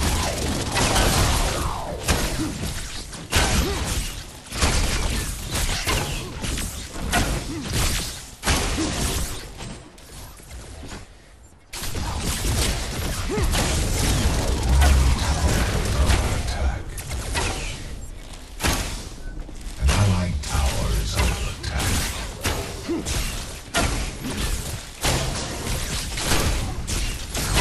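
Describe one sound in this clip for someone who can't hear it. Game spells and weapons blast and crackle in rapid bursts.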